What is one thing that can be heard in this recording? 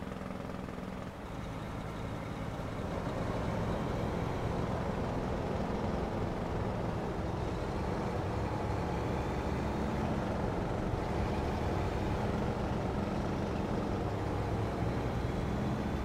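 A heavy truck engine rumbles steadily, growing louder early on.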